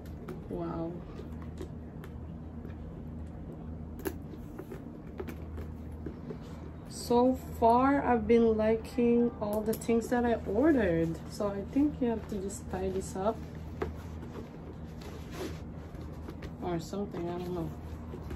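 Paper wrapping rustles and crinkles.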